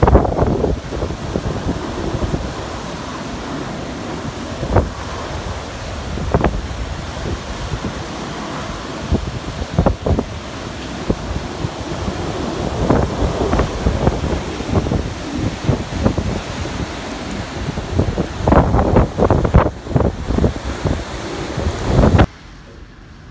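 Typhoon wind roars and gusts, buffeting the microphone.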